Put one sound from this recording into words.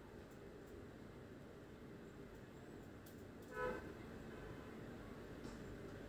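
Liquid pours into a pot with a soft splashing.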